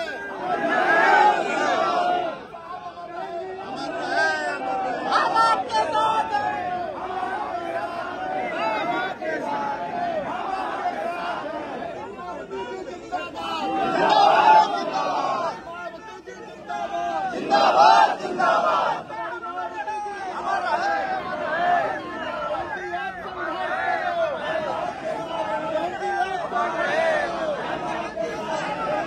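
A crowd of men chants slogans loudly outdoors.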